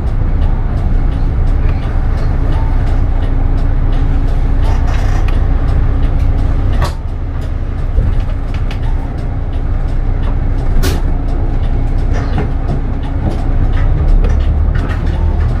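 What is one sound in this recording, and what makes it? A bus rattles and clicks as it drives over the road.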